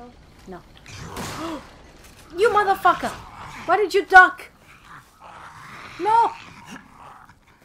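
A monster lets out loud, rasping growls and shrieks close by.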